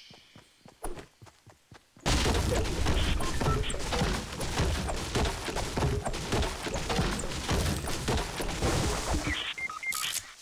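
A pickaxe strikes a tree trunk with repeated thuds.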